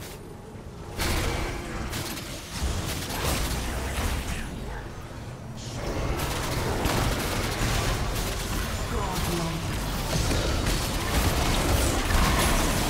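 Spell blasts and weapon strikes crackle and burst in a video game battle.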